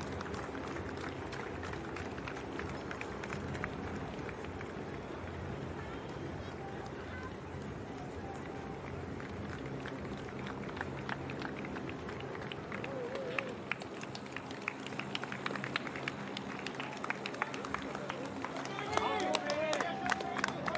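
A crowd of spectators cheers and claps outdoors.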